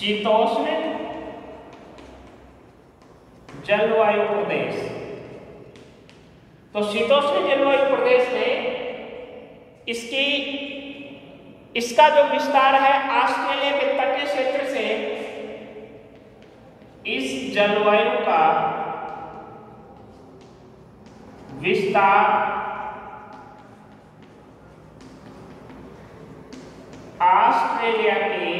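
A man speaks calmly, as if teaching, in an echoing room.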